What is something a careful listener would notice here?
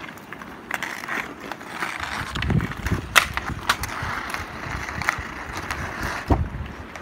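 Ice skates scrape across an ice rink.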